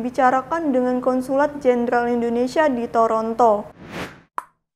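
A young woman speaks calmly and clearly into a nearby microphone.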